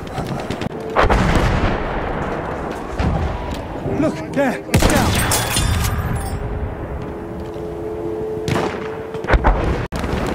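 A bolt-action sniper rifle fires loud single shots.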